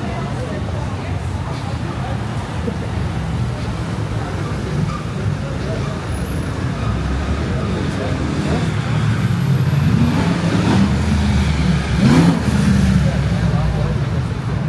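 City traffic rumbles steadily nearby.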